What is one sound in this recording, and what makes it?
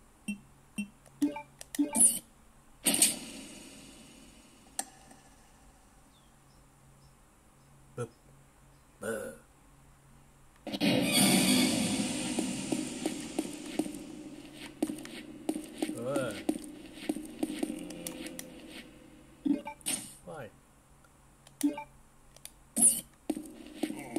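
Short menu beeps and clicks sound from a small phone speaker.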